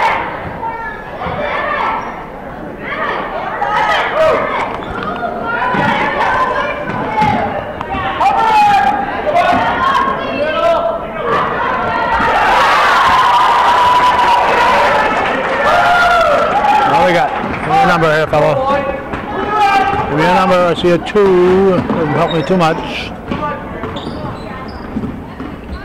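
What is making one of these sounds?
Spectators cheer and shout loudly in an echoing gym.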